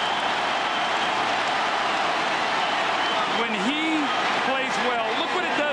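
A large crowd roars and cheers loudly in a big echoing arena.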